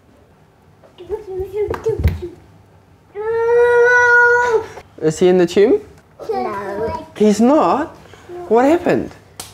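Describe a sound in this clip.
A toddler babbles and shouts excitedly close by.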